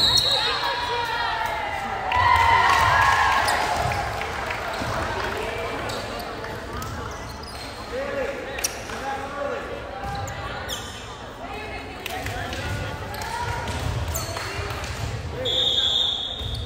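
Young women players shout and call to each other on the court.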